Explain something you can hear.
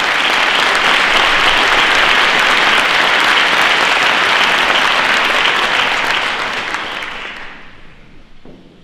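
An audience applauds loudly in a large hall, then fades.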